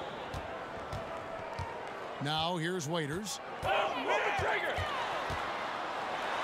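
A basketball bounces steadily on a hardwood floor.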